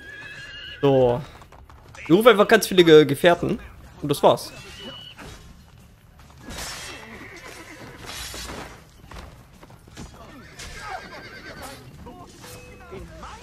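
A horse's hooves clop on the ground.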